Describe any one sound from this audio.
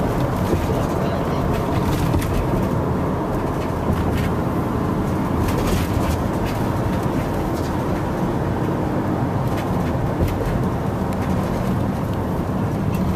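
Wind rushes past an open car window.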